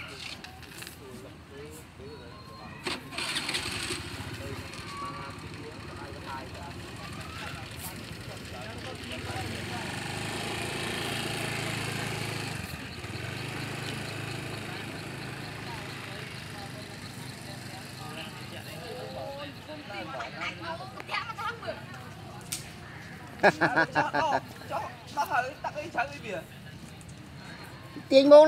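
Several men and women chatter outdoors nearby.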